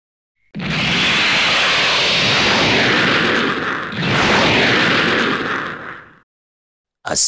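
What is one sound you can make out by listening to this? A strong wind roars and rushes past.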